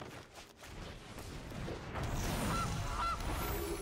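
A soft magical whoosh and shimmer sound as a card is played.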